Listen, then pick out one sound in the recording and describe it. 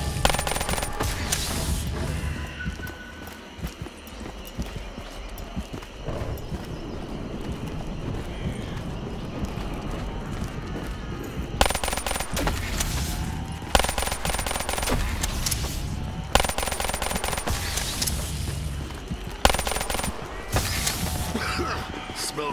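Electricity crackles and zaps in bursts.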